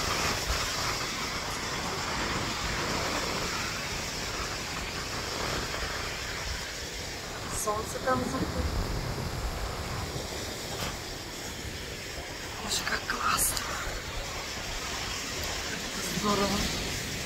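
Wind blows across the microphone.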